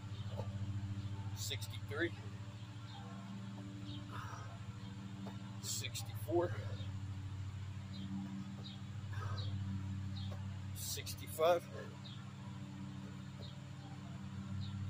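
Feet thump softly on grass as a man jumps and drops to the ground.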